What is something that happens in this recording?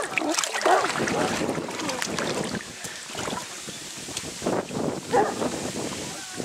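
Water splashes as a person climbs out of an inflatable boat.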